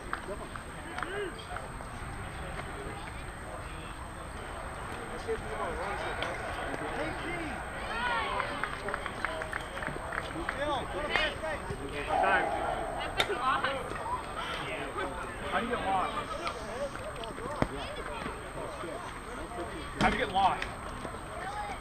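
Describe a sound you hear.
Men call out and chatter across an open playing field outdoors.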